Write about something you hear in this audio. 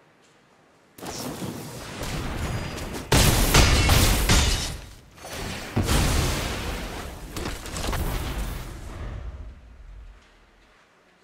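Fantasy game sound effects whoosh and crash as cards attack.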